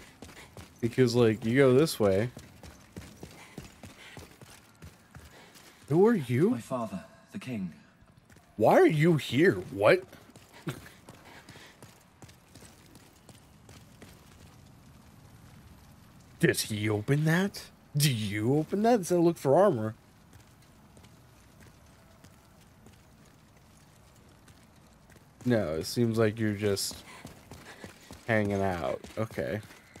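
Armoured footsteps run over stone.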